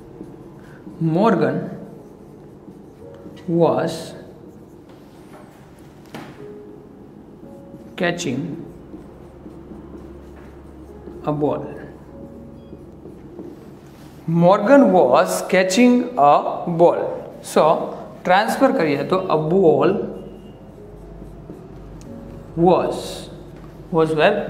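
A man speaks clearly and steadily, close by.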